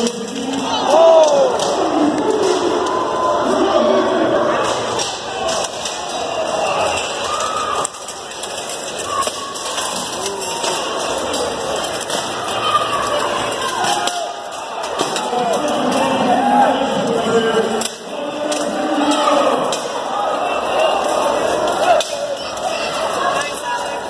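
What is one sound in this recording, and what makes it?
A crowd of people shouts and cheers loudly in a large echoing hall.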